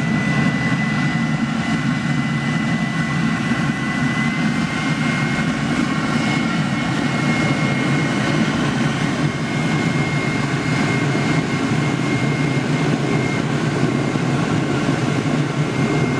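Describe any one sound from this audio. A furnace burner roars steadily.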